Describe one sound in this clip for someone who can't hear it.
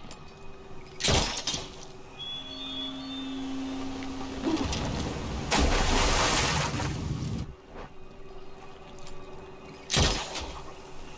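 A grappling hook fires with a sharp bang.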